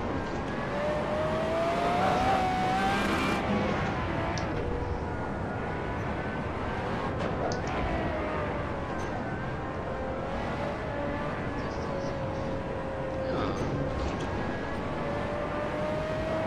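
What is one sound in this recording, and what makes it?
A race car engine roars steadily, its pitch rising and falling as it shifts gears.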